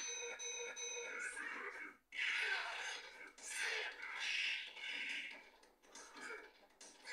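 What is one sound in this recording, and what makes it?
Fighting game sound effects of punches and blows play through a television speaker.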